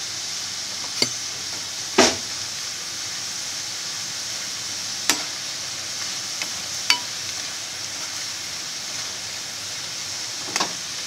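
A metal skimmer clinks against a pan.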